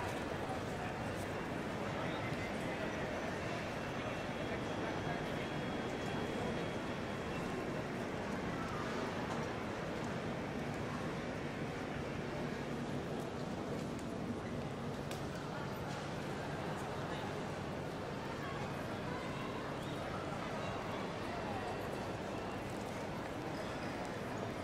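Many people murmur and walk, echoing under a large high roof.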